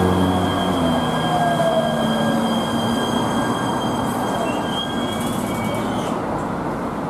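A light rail train rolls into the station and slows to a stop.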